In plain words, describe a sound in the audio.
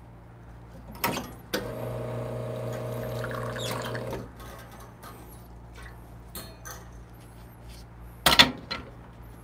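A glass clinks against a metal drip tray.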